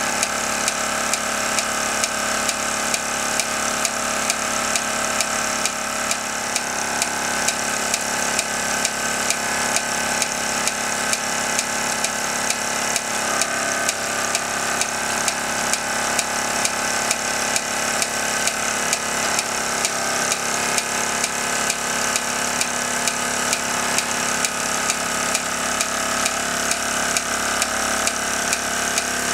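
A small toy steam engine chuffs rapidly.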